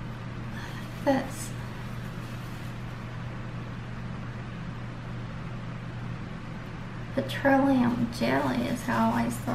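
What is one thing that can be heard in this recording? A woman speaks calmly close to the microphone.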